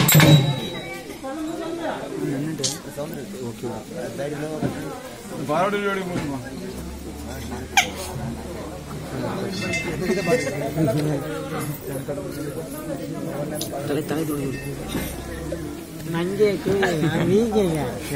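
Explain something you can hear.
A crowd of men and women talk and call out nearby.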